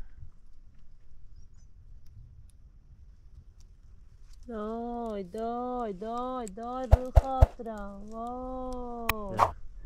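Leaves rustle close by as berries are picked from a bush.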